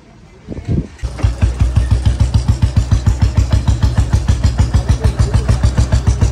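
A motorcycle engine thumps steadily close by.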